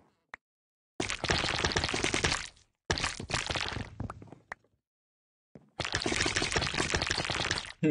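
Blocks crumble and crunch as they are broken.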